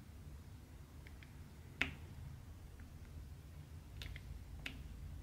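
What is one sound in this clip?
Tiny plastic beads click and tap as they are pressed into place.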